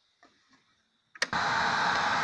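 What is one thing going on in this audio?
A console switch clicks.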